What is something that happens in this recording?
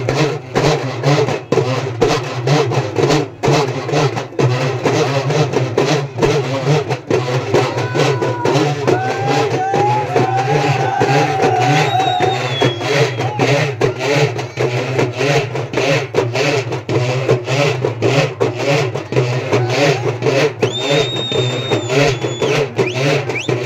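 A crowd of men chants loudly together in rhythm, outdoors.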